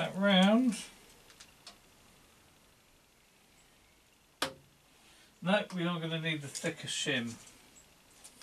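A man talks briefly, close by.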